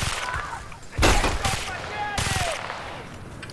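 Gunfire rings out in sharp, loud bursts.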